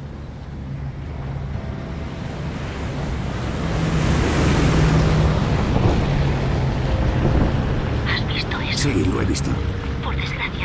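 A propeller plane drones overhead, growing louder.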